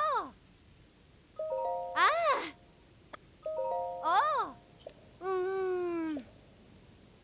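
Short melodic chimes play.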